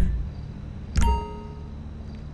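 A purchase chime rings once.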